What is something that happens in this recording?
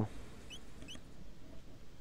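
Short electronic blips chirp from a game menu.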